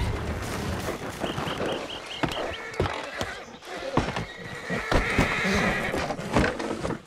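Horses' hooves clop on a dirt road.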